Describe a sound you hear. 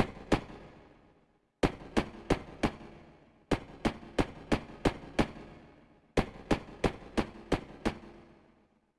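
Footsteps tap steadily across a hard floor in a large echoing hall.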